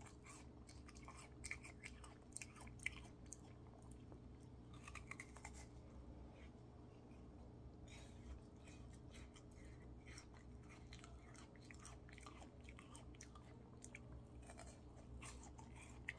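A young man licks and slurps an ice lolly up close.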